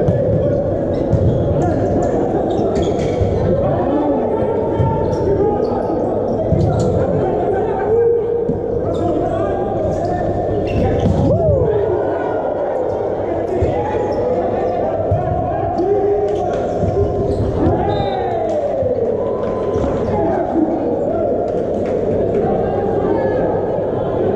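Men shout to one another across a large echoing hall.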